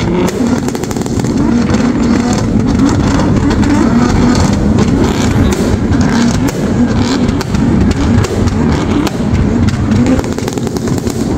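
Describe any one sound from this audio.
Several car engines idle loudly and rumble together outdoors.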